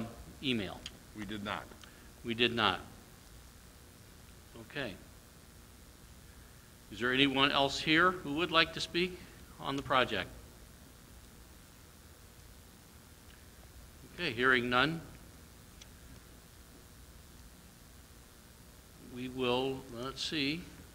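A man speaks calmly through a microphone in a large echoing hall, with long pauses.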